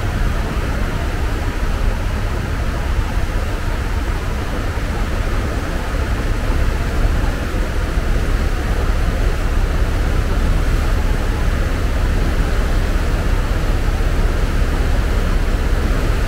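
A boat's wake churns and splashes on the water.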